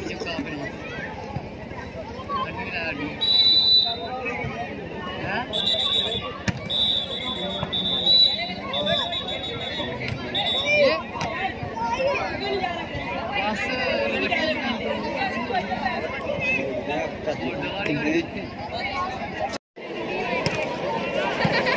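A large crowd chatters and shouts outdoors.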